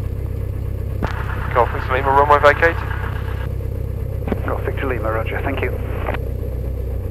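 A man speaks calmly over a crackly radio headset.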